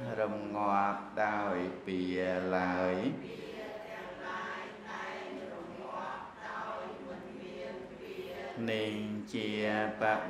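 A middle-aged man chants in a steady, drawn-out voice through a microphone.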